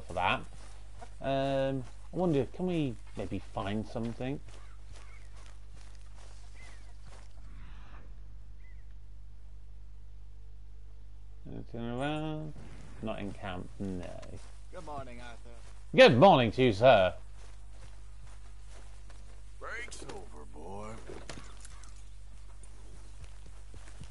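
Footsteps tread through grass.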